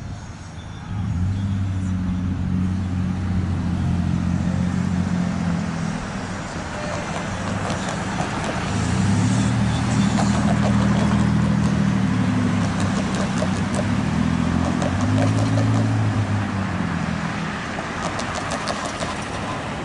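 A truck engine idles with a low, steady rumble nearby.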